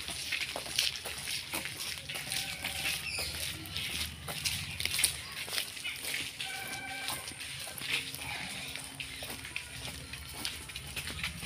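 Footsteps scuff on a paved lane outdoors.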